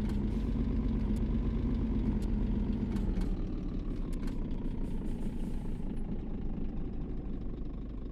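A truck's diesel engine rumbles low and steadily as the truck slows to a crawl.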